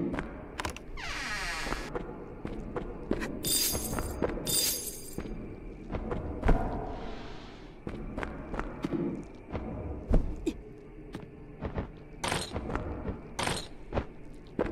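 Sharp whooshing and clanging effects burst out.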